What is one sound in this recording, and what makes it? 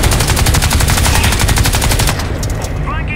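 A gun fires in a rapid burst.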